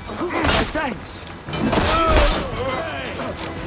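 A man grunts and shouts while fighting.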